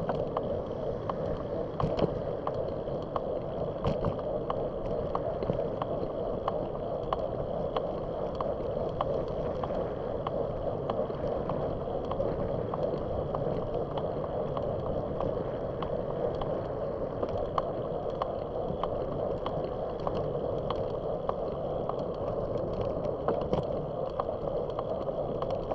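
Wind rushes steadily past while riding outdoors.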